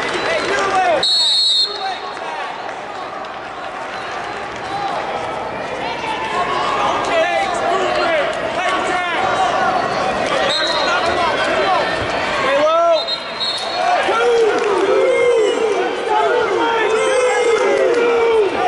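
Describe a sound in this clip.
A crowd murmurs and cheers in a large echoing hall.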